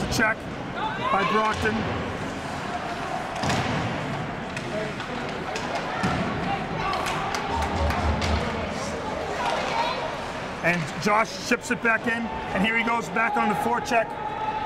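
Hockey sticks tap and clack together.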